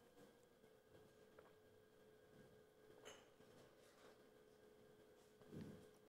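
A man sips from a mug.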